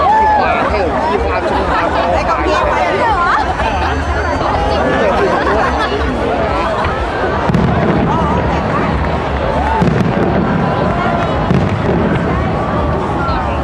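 A crowd of people chatters and cheers nearby outdoors.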